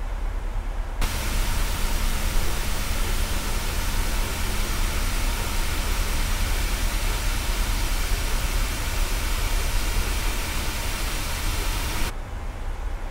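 A jet airliner roars loudly with a rushing hiss in the open air.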